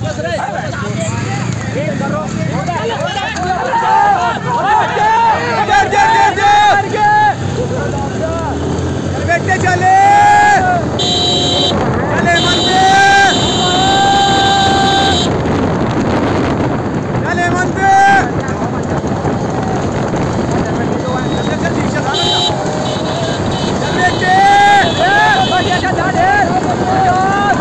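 Men shout and cheer excitedly close by, outdoors.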